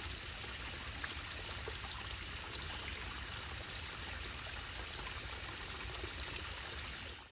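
A small stream trickles and gurgles steadily over stones outdoors.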